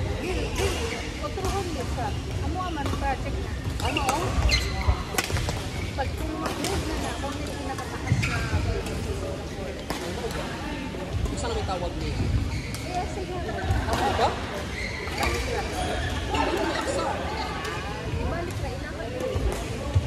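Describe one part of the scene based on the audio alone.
Shuttlecocks are struck with sharp pops of rackets in a large echoing hall.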